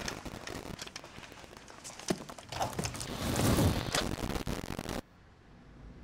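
A violent struggle thuds and scuffles loudly.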